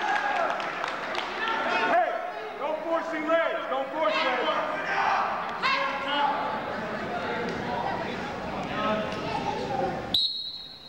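A crowd of spectators murmurs and calls out in a large echoing gym.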